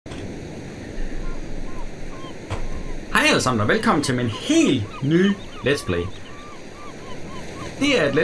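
Gentle waves lap softly against the shore.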